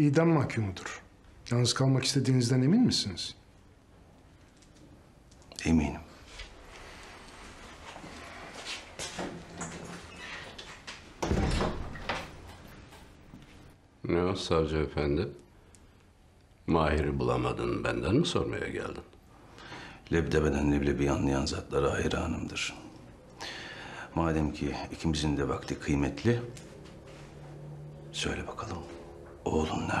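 A middle-aged man speaks calmly and quietly, close by.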